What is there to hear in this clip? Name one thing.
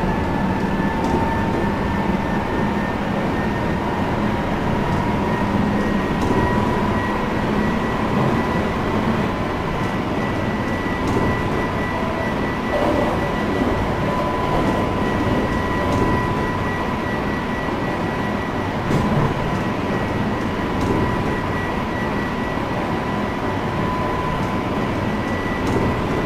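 An electric train's wheels click over rail joints.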